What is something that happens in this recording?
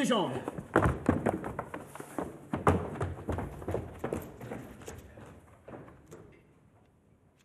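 Footsteps clatter across a hard floor.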